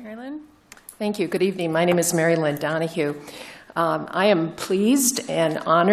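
An elderly woman speaks with animation into a microphone in a large room.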